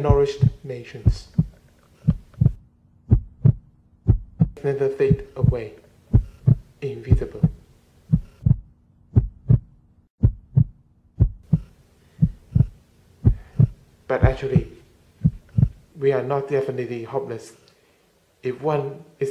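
A young person speaks softly and slowly close to a microphone.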